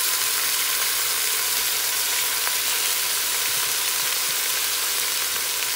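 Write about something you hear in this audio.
A wooden spoon scrapes and stirs food in a metal pot.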